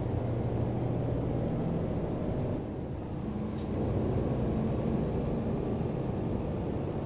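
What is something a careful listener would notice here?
A truck engine rumbles low and steady, dipping briefly before pulling harder again.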